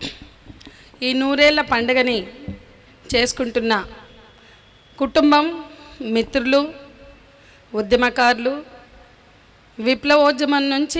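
A woman sings through a microphone outdoors, in long held phrases with pauses between them.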